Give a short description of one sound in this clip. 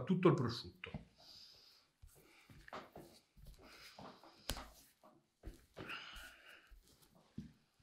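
Hands tap and pat a hard crusty loaf.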